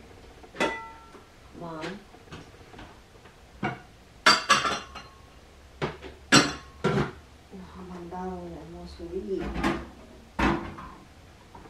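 Dishes clatter and clink as they are handled at a sink.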